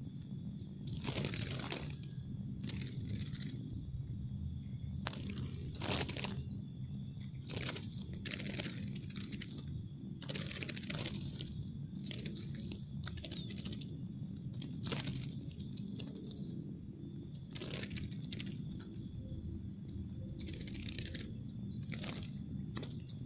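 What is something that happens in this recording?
Small birds chirp in short bursts close by.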